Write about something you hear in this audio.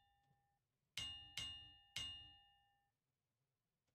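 Bright electronic chimes ring three times in quick succession.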